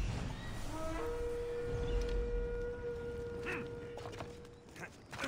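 An eagle screeches.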